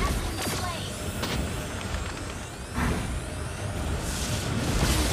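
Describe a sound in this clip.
Game spell effects whoosh and crack in a busy battle.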